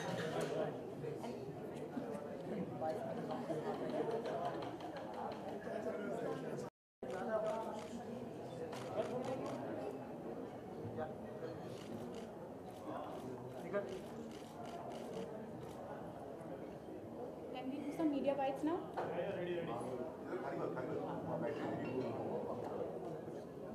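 A crowd of people chatter and talk loudly all around.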